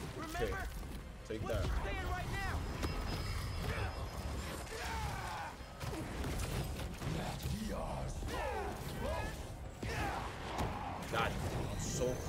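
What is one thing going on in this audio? Game combat thuds and crackles with electric blasts.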